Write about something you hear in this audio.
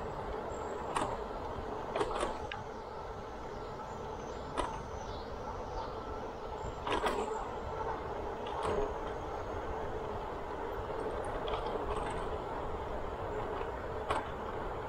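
A bicycle rattles and clicks over bumps in the path.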